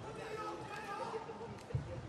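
A badminton shuttlecock is tapped with a racket.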